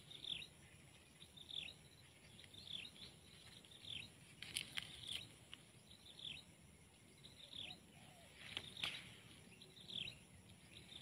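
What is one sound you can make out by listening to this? A small bird chirps repeatedly in short falling calls.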